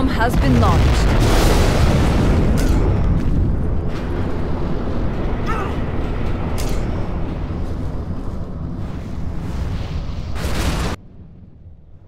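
Large explosions boom and rumble.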